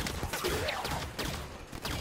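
A blast explodes with a loud boom.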